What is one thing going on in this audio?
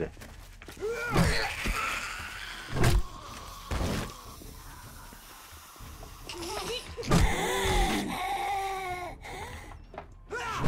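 A zombie snarls and groans.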